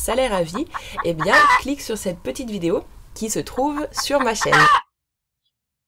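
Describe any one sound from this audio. A hen clucks loudly.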